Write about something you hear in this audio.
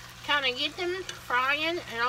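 A whisk scrapes and stirs in a pot.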